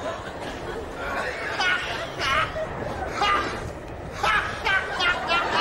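An older man laughs loudly and heartily.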